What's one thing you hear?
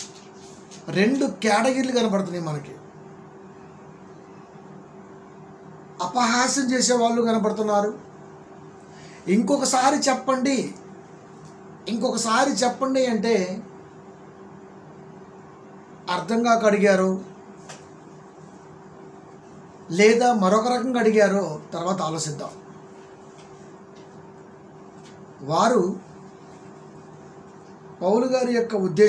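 A middle-aged man sings slowly and with feeling in short phrases, close to a microphone.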